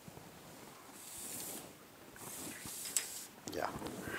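A plastic ruler slides across paper.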